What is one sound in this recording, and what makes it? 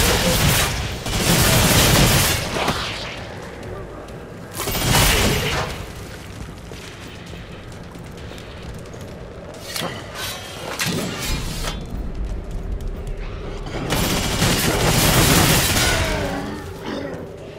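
A heavy gun fires in loud bursts.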